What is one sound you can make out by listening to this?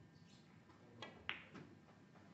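A snooker cue strikes the cue ball.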